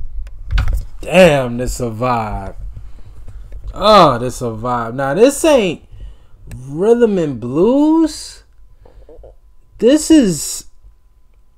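A man talks close by, with animation, in short bursts.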